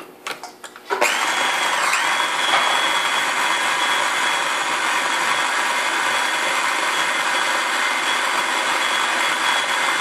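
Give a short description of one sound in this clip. An electric grinder whirs loudly and steadily.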